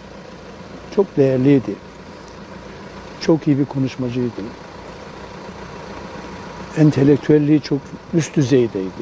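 An elderly man speaks slowly and calmly into microphones close by, pausing between phrases.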